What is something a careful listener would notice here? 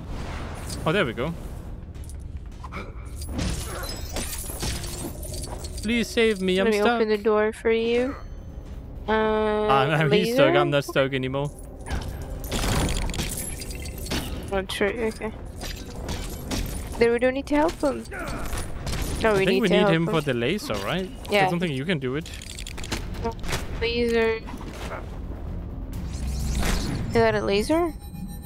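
Electronic zaps and clinks play in a video game.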